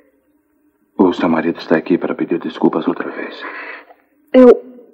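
A man speaks softly and gently close by.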